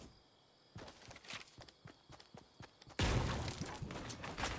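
Wooden walls thud and clatter into place.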